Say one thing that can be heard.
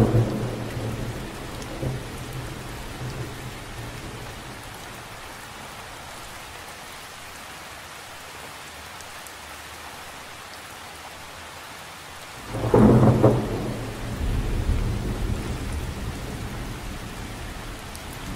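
Rain patters steadily on a lake's surface.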